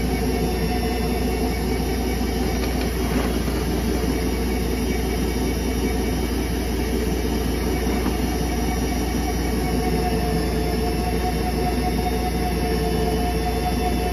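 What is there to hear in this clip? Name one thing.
A drain cleaning machine hums steadily as its spinning cable feeds into a drain.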